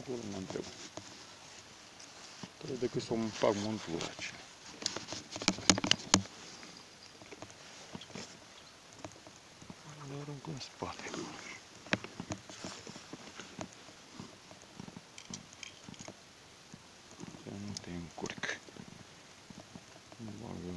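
A fishing reel clicks and rattles as it is handled.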